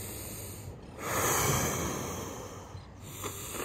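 A man breathes in deeply and slowly close by.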